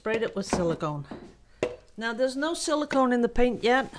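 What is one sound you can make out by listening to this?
A plastic cup is set down on a hard surface.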